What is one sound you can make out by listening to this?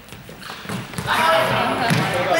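Young people call out and talk with animation in a large echoing hall.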